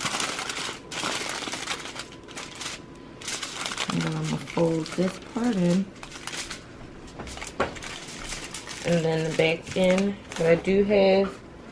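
Aluminium foil crinkles and rustles as hands fold it.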